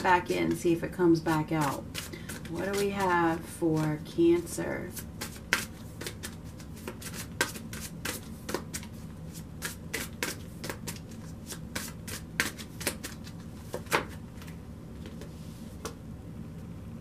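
Cards shuffle with quick, rapid riffling clicks.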